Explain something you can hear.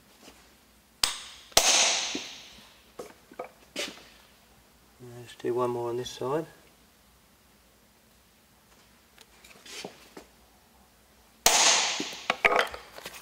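A hammer strikes a metal stamp into leather with sharp knocks.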